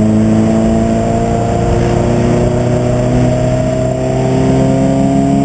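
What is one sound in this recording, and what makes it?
A race car engine roars loudly from inside the cabin, its pitch slowly rising.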